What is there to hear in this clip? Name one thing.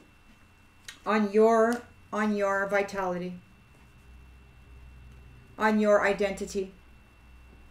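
A woman speaks calmly and close by.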